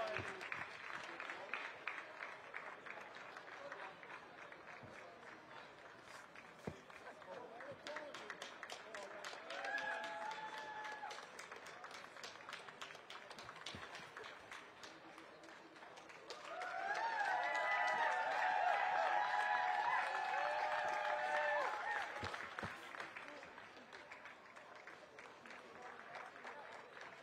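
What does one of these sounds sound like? A crowd of spectators murmurs in the background.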